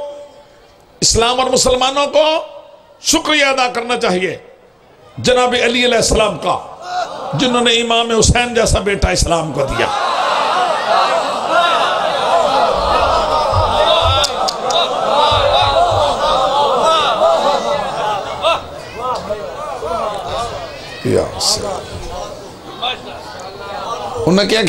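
A middle-aged man speaks with emotion through a microphone and loudspeakers.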